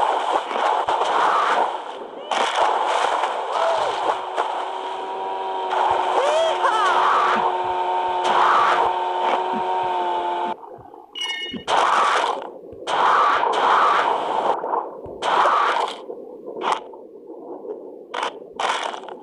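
A shark chomps with loud crunching bites.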